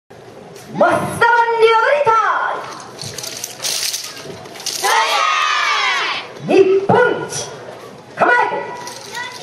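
A woman sings loudly through a microphone and loudspeaker.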